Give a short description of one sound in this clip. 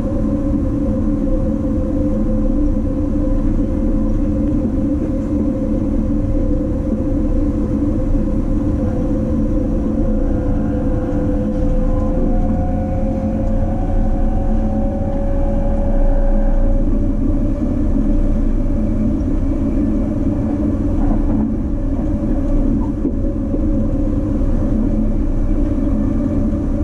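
A train rumbles steadily along its tracks, heard from inside a carriage.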